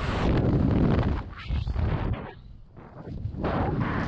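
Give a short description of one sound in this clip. A parachute canopy flutters in the wind.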